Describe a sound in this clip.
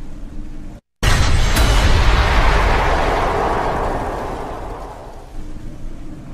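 A glowing amulet gives off a rushing, shimmering swell that slowly fades.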